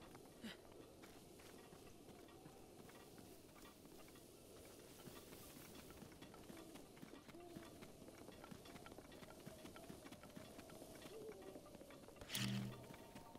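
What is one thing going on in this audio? Footsteps patter steadily over grass.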